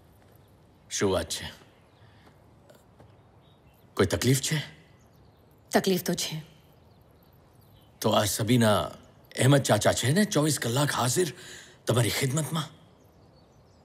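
A man speaks forcefully, close by.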